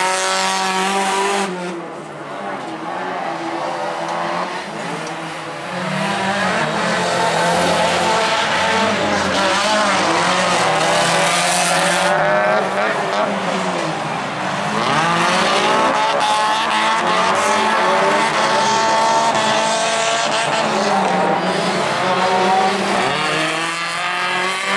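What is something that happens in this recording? Rally car engines roar and rev hard, rising and falling in pitch.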